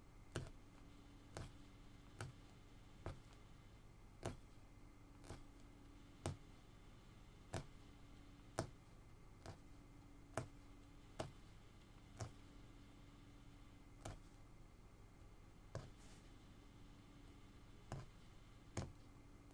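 A punch needle taps rhythmically through stretched cloth.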